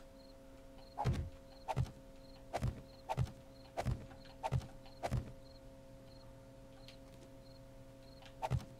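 Building blocks are set in place with repeated heavy wooden thuds.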